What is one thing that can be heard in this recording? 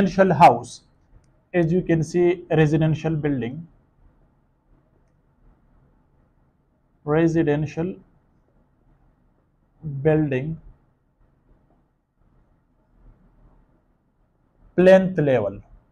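A man speaks calmly in short phrases with pauses, close to a microphone.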